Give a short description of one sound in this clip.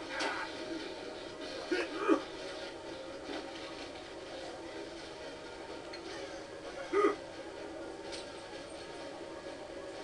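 Video game sounds play through a television loudspeaker, with a steady low drone and a few sudden bursts.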